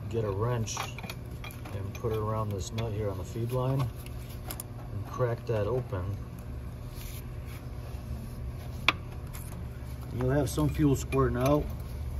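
A metal wrench clicks against engine parts.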